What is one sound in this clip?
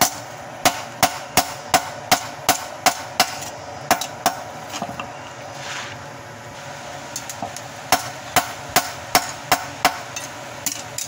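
A hammer strikes hot metal on an anvil in quick, ringing blows.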